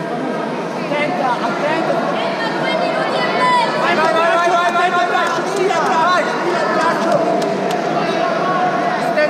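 Men shout instructions loudly.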